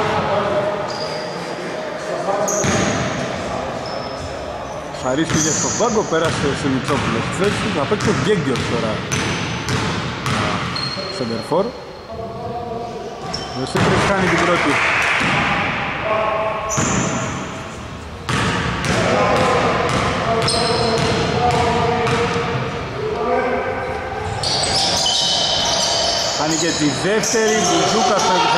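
Young men call out to each other across the hall.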